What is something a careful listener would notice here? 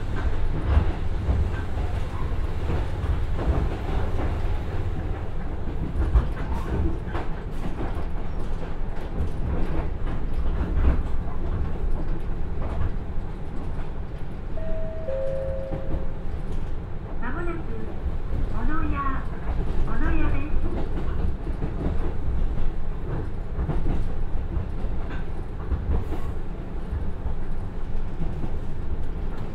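A diesel train engine rumbles steadily.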